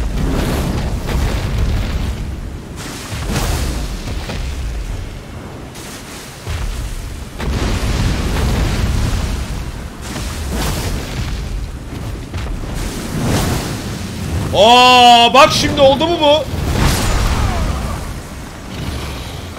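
A huge creature roars with deep rumbles.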